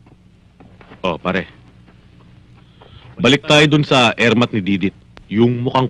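A man speaks close by in a low, earnest voice.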